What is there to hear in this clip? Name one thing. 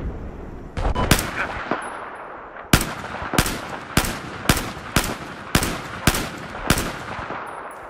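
A rifle fires a quick series of single shots.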